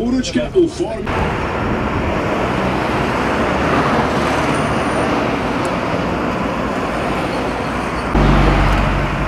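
Cars rush past on a busy road with a steady roar.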